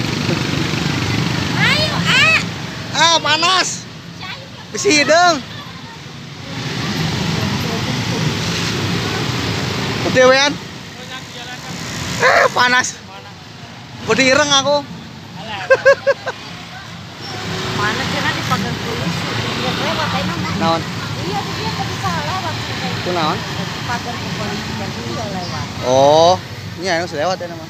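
A crowd of men and women chatter and call out loudly.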